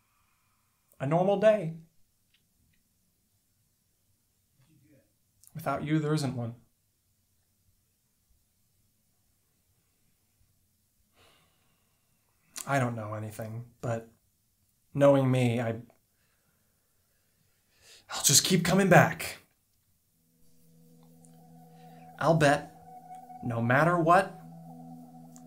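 A young man speaks quietly and close by, in short bursts with pauses.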